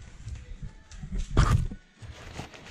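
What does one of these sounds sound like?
Paper banknotes rustle close by.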